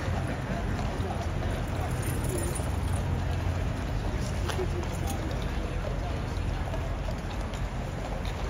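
Horses' hooves clop as they walk on stone paving.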